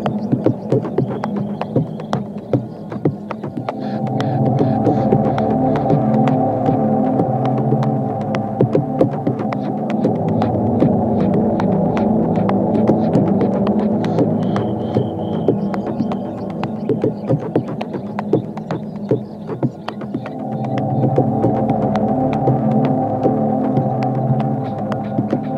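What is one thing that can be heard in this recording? Electronic dance music plays with a steady beat.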